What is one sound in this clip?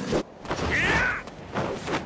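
A kick whooshes through the air.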